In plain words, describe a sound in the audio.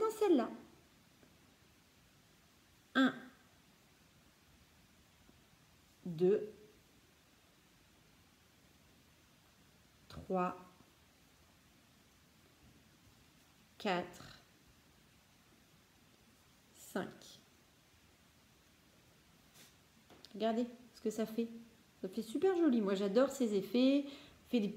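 A woman speaks calmly and close by, in short phrases with pauses.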